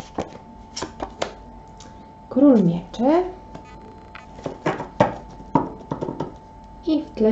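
Cards tap softly as they are laid down on a table.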